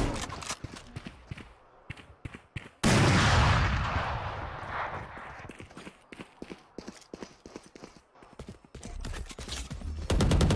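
Quick footsteps patter on a hard floor.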